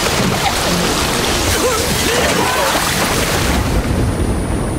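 Water splashes and churns loudly.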